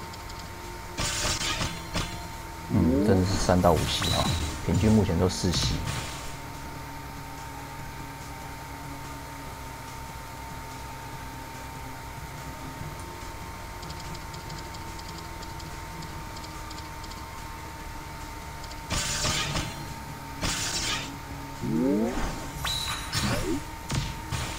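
Bright game chimes ring out as gems are matched and cleared.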